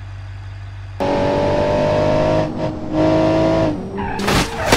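A car engine roars loudly as it speeds up.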